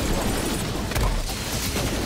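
A loud energy blast booms.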